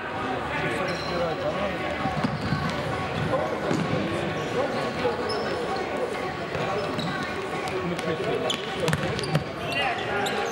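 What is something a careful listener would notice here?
A ball thuds as it is kicked.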